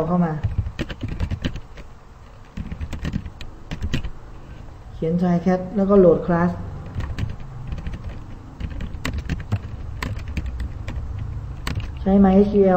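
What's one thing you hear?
Keys clatter on a keyboard in quick bursts of typing.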